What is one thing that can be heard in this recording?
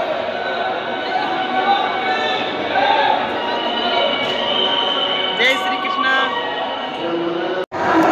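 A man talks cheerfully close by.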